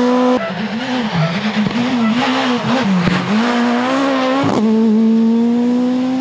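A rally car's engine revs hard, rising and dropping as the gears change.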